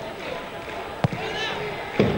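A football thuds as a player kicks it.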